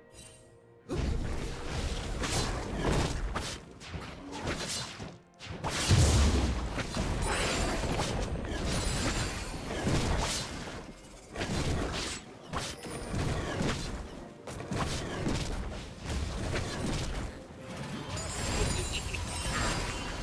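Magic blasts and weapon strikes crackle and thud in a busy fight.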